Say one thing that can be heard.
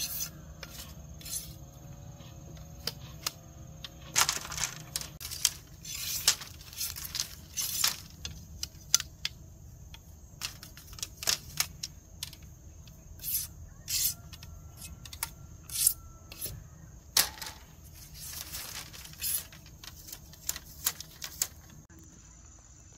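A machete chops and scrapes at bamboo poles with sharp knocks.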